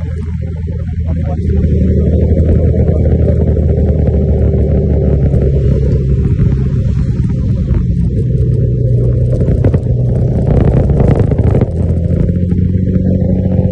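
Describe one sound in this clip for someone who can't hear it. A motorcycle engine hums steadily, rising and falling in pitch as the rider speeds up and slows down.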